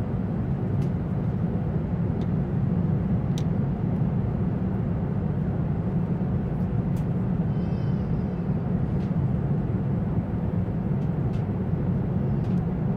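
A jet airliner's engines roar steadily inside the cabin.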